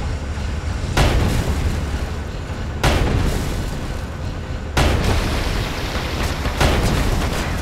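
Explosions burst against a large flying ship.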